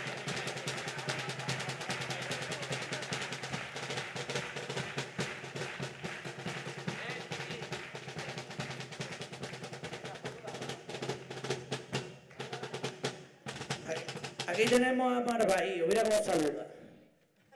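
A chorus of men sings together through microphones.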